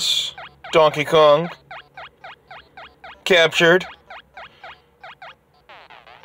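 Short falling electronic blips repeat steadily as a game character moves.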